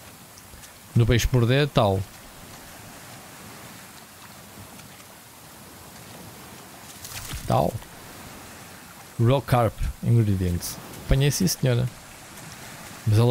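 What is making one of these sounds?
A man speaks into a close microphone in short, animated bursts.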